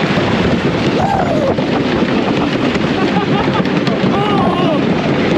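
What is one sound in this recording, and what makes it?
Riders scream and shout with excitement.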